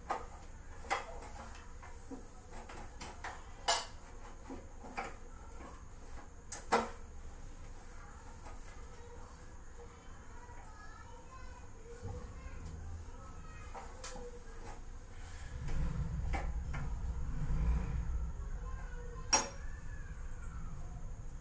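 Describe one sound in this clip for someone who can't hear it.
Metal utensils clink and clatter against pans.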